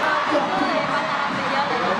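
A second young man sings into a microphone.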